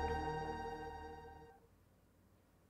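Game music plays through a speaker.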